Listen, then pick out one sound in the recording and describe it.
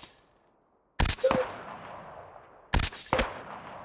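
A sniper rifle fires two echoing shots.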